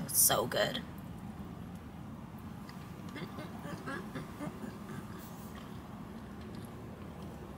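A young woman chews food with her mouth closed.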